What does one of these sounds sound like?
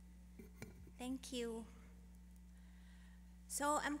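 A woman begins speaking through a microphone.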